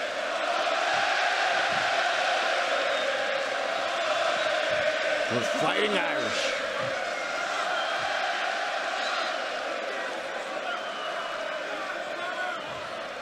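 A large crowd roars steadily in a big arena.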